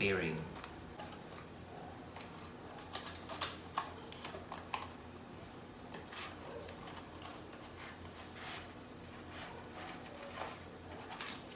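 A cardboard box rustles and clicks as it is opened.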